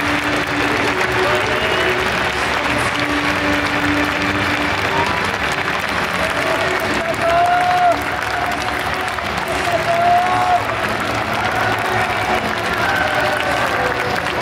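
A large crowd cheers and calls out in an open stadium.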